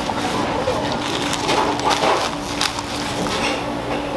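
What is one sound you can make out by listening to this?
Plastic bags rustle and crinkle.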